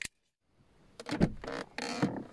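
A car door handle clicks open.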